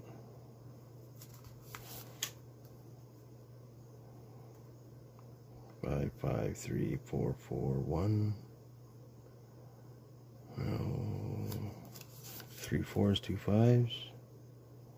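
Paper banknotes rustle and crinkle as hands handle them.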